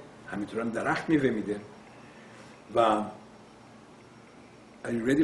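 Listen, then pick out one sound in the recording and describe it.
An older man speaks calmly and close to the microphone, in short phrases with pauses.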